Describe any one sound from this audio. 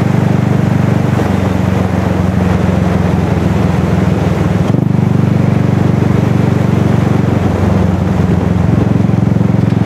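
An engine drones steadily at low pitch while driving.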